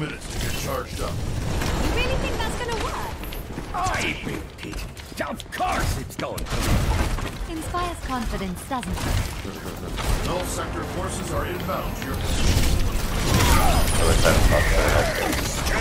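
Rapid gunfire and energy blasts ring out in a video game.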